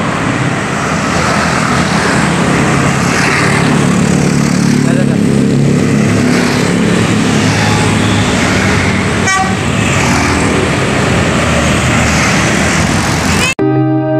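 Motorbikes buzz past close by.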